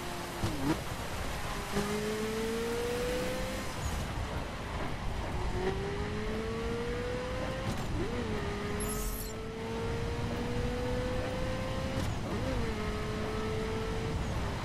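A sports car engine revs high and climbs in pitch, dropping briefly at each gear change.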